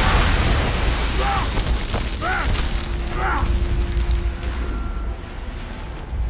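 A loud explosion roars and rumbles, then slowly fades.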